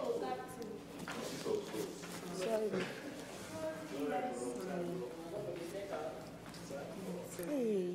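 Several young women and men talk over one another with animation.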